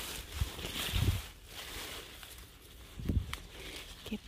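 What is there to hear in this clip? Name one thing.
Leaves rustle as a hand reaches into plants.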